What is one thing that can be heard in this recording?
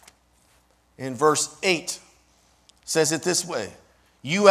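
A man speaks calmly, in short phrases.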